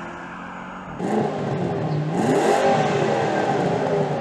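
A car exhaust rumbles and revs up close.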